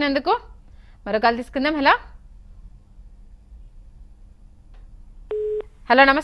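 A woman speaks clearly and calmly into a microphone.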